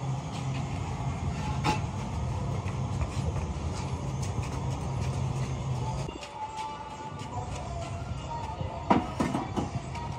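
Heavy ceramic pieces knock and scrape as workers shift them.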